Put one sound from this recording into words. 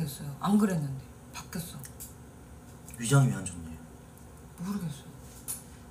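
A young woman speaks calmly in short bursts close to a microphone.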